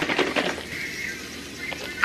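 Creamer pours into a glass of iced coffee.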